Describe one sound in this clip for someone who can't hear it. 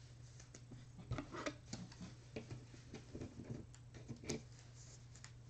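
Plastic card cases click and rustle as hands handle them.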